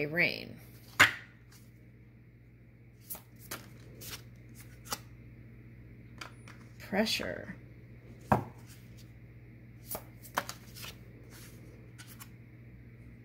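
Cards tap and slide softly on a wooden table.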